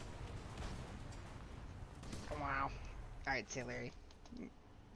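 An explosion rumbles with a deep boom.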